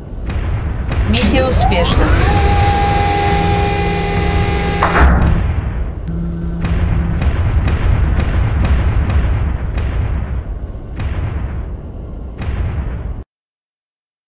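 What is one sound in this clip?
A large machine hums and rumbles with deep heavy thuds as it moves.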